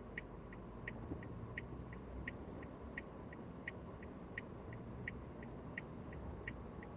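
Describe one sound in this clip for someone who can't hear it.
A car pulls away and drives along the road.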